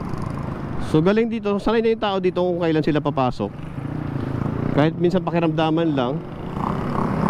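A motorcycle engine revs up and down sharply.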